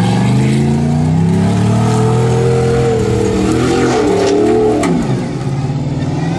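Tyres spin and spray loose sand and gravel.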